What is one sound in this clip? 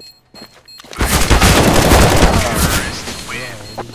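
A rifle fires a rapid, loud burst of gunshots.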